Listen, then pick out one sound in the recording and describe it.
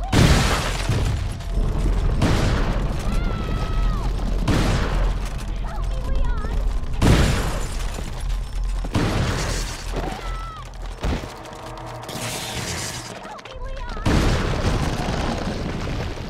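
A monster groans and shrieks.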